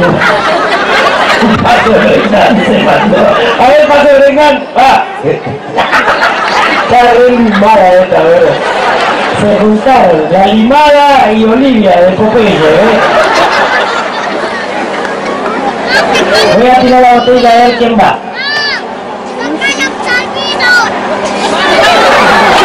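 A large crowd murmurs and chatters in the background.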